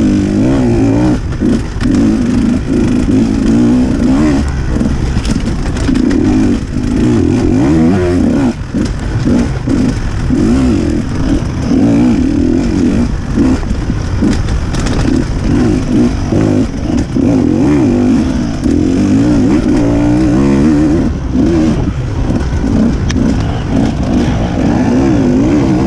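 Tyres crunch over dry leaves and dirt.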